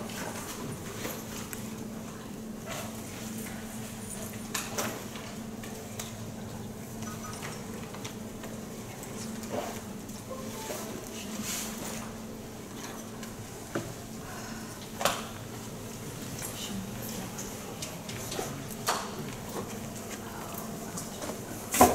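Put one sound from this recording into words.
A man speaks faintly at a distance in a room.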